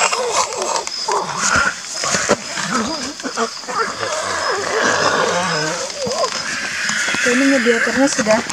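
A young man speaks urgently and close by.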